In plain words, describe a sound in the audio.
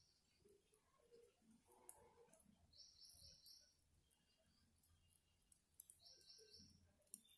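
Metal knitting needles click and tick against each other.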